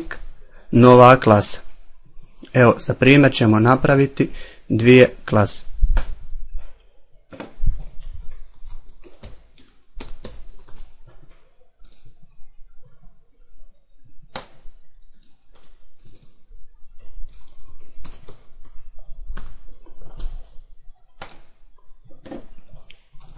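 A mouse button clicks now and then.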